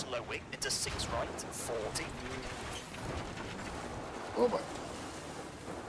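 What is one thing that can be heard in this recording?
A car crashes into bushes with heavy thuds.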